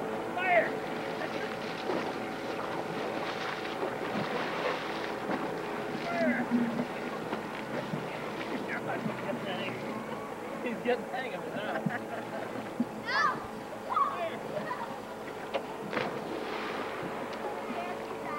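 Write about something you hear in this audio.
Children shout and laugh outdoors.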